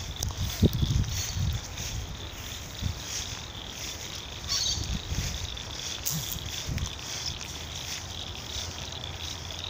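Wind blows in gusts outdoors.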